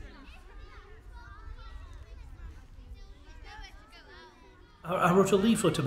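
Children chatter quietly outdoors.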